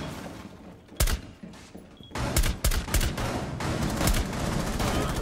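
An assault rifle fires shots.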